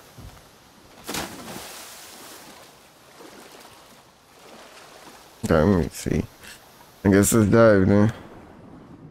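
Water splashes with swimming strokes.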